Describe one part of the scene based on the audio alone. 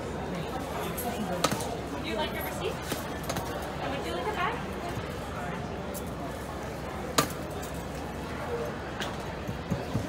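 Chopped nuts crunch and rustle as an ice cream bar is rolled in them.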